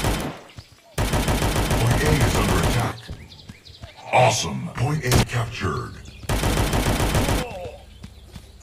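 An automatic gun fires rapid bursts of shots.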